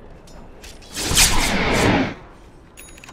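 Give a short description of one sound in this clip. A spell bursts with a loud whooshing blast.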